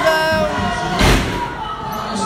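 A wrestler slams down hard onto a ring mat with a loud thud.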